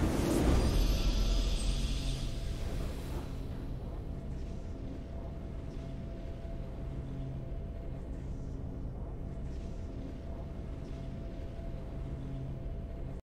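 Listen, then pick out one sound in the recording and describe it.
Calm triumphant music plays.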